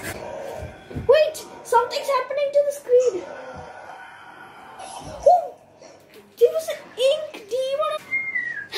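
A young boy talks with animation, close to a microphone.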